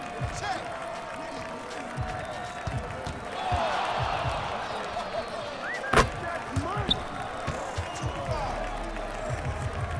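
A basketball bounces steadily on a hardwood court.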